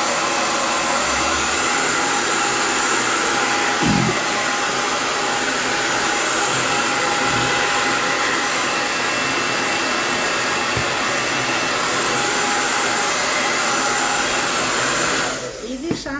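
A hair dryer blows with a steady, loud whoosh close by.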